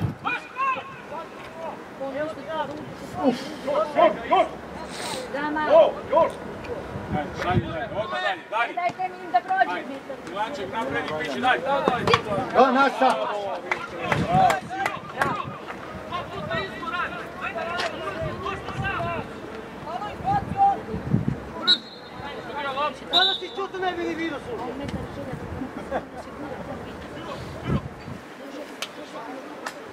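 Young male players shout and call to each other across an outdoor field.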